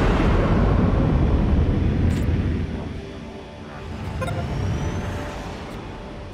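A low engine rumbles and slowly fades.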